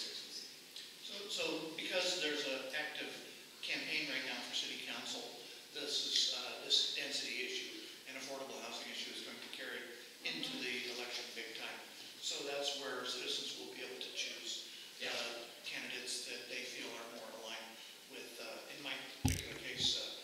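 A young man speaks calmly and steadily, close by in a room.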